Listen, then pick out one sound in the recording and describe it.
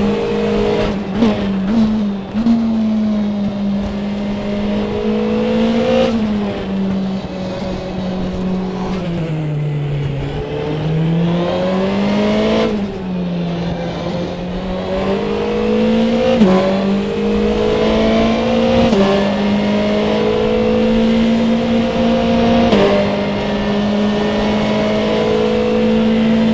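A racing car engine roars loudly, its pitch rising through the gears and dropping as it slows for corners.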